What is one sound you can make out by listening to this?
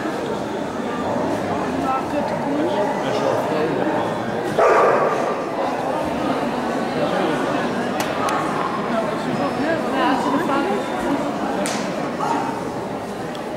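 A dog handler calls commands to a dog in a large echoing hall.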